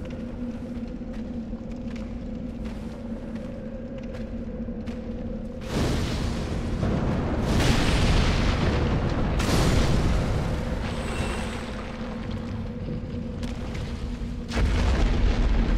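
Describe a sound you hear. Footsteps scrape on stone.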